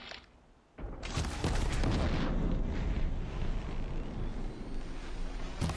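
A loud explosion bursts with crackling sparks.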